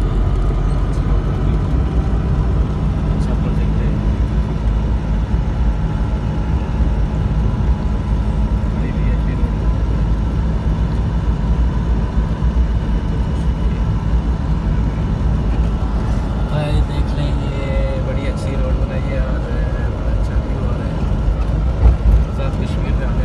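A car drives along a winding road with a low engine rumble.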